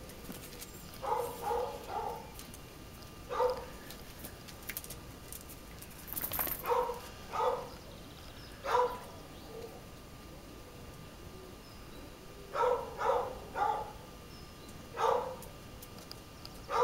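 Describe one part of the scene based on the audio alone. A dog barks repeatedly nearby.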